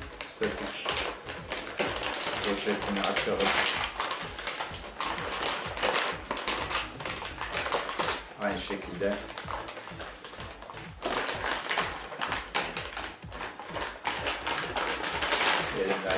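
Foil packaging crinkles and rustles loudly.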